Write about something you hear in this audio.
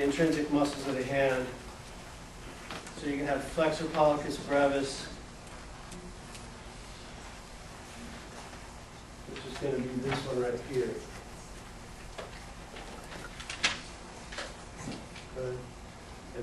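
A man lectures calmly in a room with a slight echo, with pauses between phrases.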